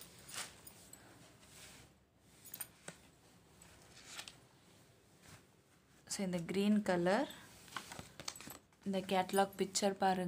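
Cloth rustles and crinkles as it is folded and handled.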